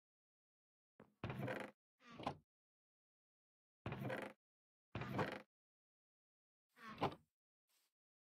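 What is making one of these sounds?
A video game wooden chest creaks open and thuds shut.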